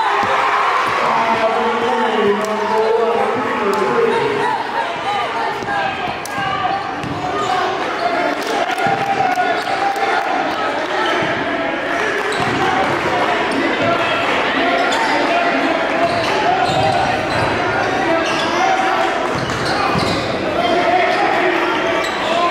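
A crowd cheers and chants in a large echoing gym.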